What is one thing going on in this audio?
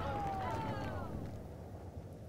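A group of men cry out in anguish.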